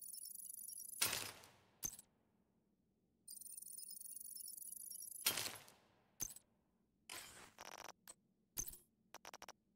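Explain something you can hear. Menu sounds whoosh and click as game menus open and close.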